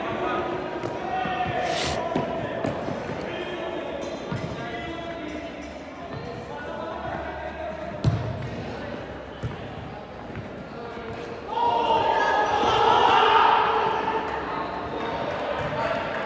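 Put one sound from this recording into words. A ball thuds as players kick it, echoing in a large hall.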